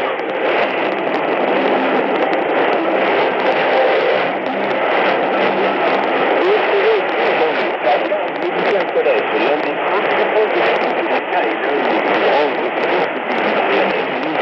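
A radio plays a weak station through loud, steady static hiss.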